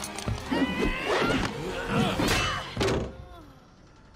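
Heavy blows thud during a scuffle.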